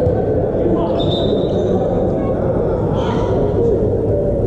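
Young men shout and cheer together after a point.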